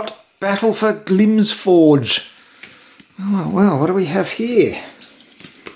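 A booklet's glossy pages rustle as hands handle them.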